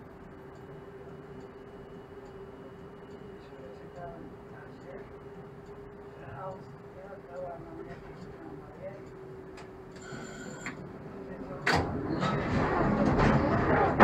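A passing tram rumbles by on its rails.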